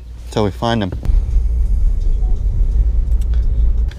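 A car rumbles along the road, heard from inside.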